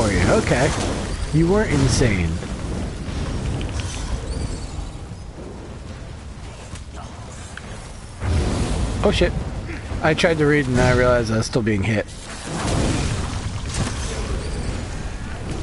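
Electric bolts crackle and zap.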